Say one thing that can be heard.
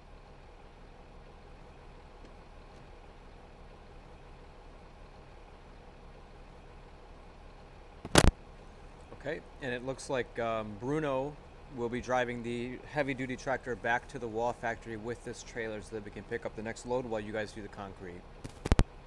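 A heavy diesel truck engine idles.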